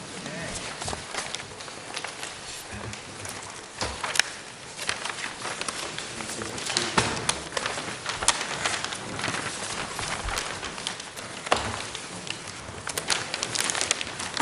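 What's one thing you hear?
Papers rustle and crackle close to a microphone.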